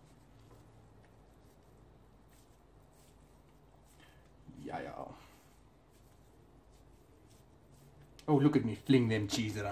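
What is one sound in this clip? Hands softly pat and slap raw ground meat.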